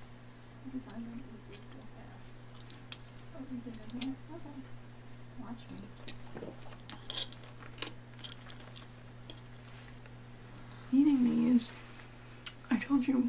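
A young woman chews gum with soft, wet sounds close to a microphone.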